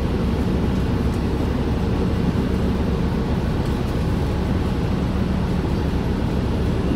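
A vehicle engine idles with a steady low rumble, heard from inside.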